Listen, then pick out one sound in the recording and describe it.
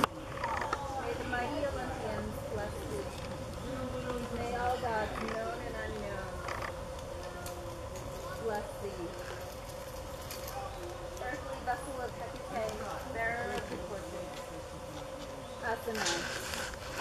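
A woman reads aloud calmly outdoors.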